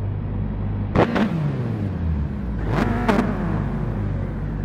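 Racing cars roar past close by, their pitch dropping as they go.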